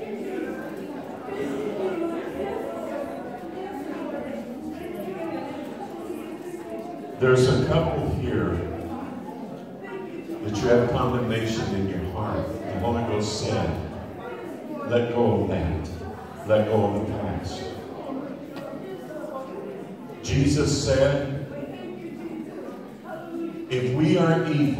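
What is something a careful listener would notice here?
A crowd of people murmurs and calls out.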